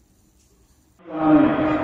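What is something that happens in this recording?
A man speaks loudly through a microphone and loudspeakers in an open space.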